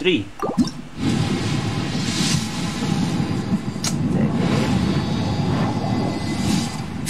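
A shooting star whooshes across the sky with a rushing roar.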